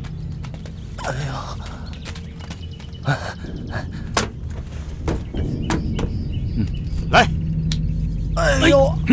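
A man speaks loudly and sharply, close by.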